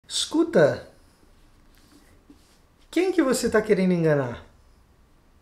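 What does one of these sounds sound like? A man speaks close by, in a questioning, drawn-out tone.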